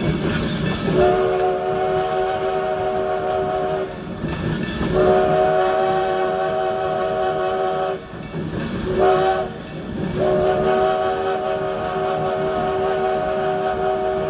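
A steam locomotive's whistle blows in long, loud blasts.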